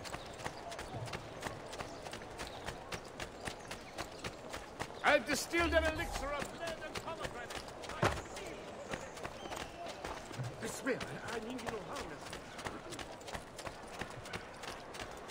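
Quick footsteps run and patter on stone paving.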